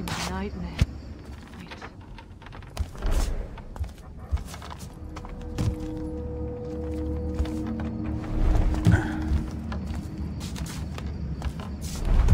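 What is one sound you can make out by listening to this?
Soft footsteps creak on wooden boards.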